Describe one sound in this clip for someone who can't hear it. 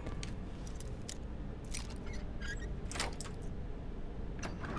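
A lock clicks as a pick works at it.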